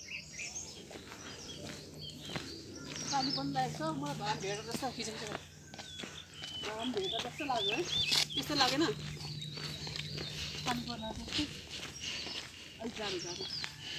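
Footsteps scuff on a rough paved road.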